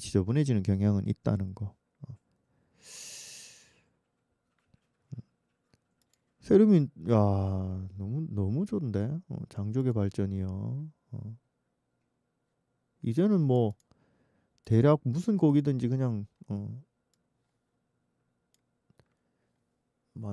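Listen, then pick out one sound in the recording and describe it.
An elderly man talks into a close microphone in short bursts with pauses.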